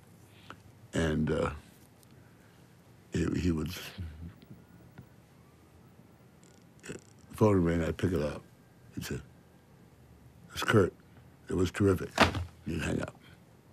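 An elderly man speaks calmly and slowly, with long pauses, close to a microphone.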